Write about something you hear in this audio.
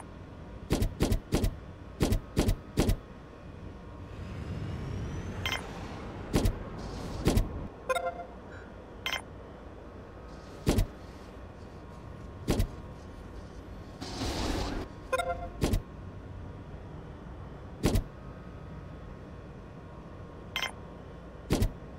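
Game interface clicks sound sharply and often.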